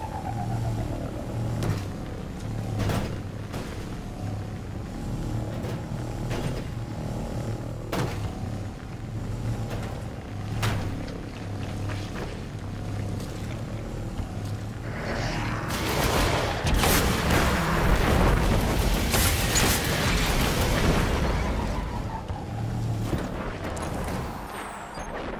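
A hover bike engine hums steadily.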